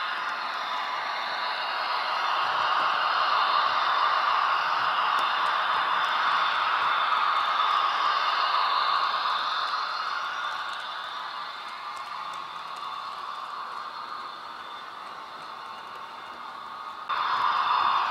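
A model train whirs and clatters steadily along its track.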